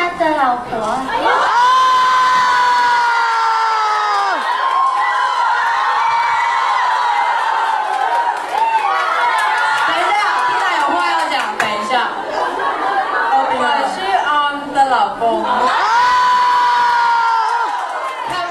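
A young man sings loudly through a microphone, holding long notes.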